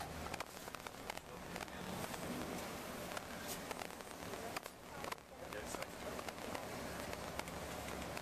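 A bus rattles and clicks over the road.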